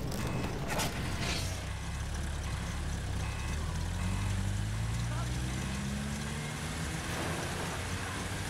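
A tank engine rumbles and drones steadily.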